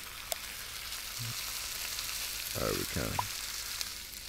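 Meat sizzles on a hot griddle.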